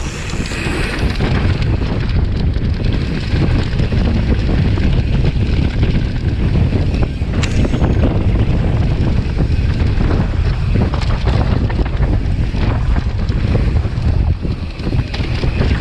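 Wind rushes loudly over a microphone.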